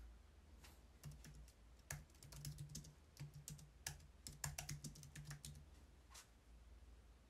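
Keys clatter quickly on a computer keyboard.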